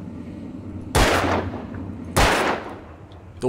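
A gun fires two loud shots.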